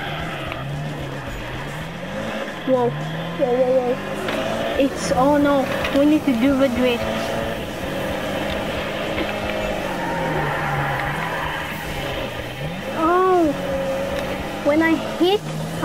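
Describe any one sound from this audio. A car engine revs up and down steadily.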